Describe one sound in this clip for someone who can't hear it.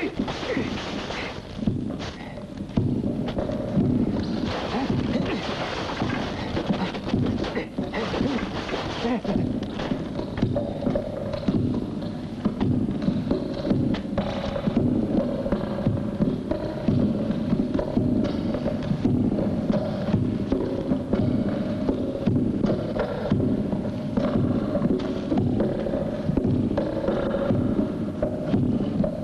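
Wooden staffs knock and clack against each other.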